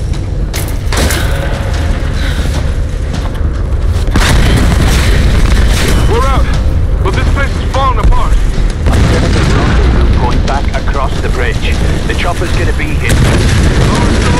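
A fire roars and crackles loudly.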